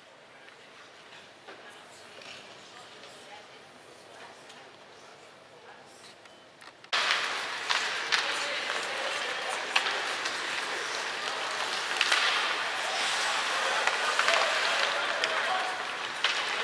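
Ice skates scrape and hiss across the ice.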